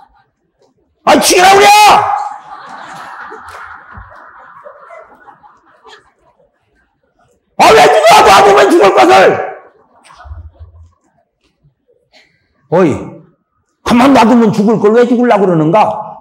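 A middle-aged man preaches loudly and passionately into a microphone, in a reverberant hall.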